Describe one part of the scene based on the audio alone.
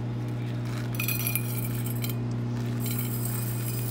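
Liquid grease trickles into a metal container.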